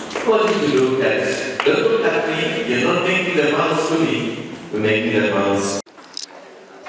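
A middle-aged man speaks loudly and clearly through a microphone.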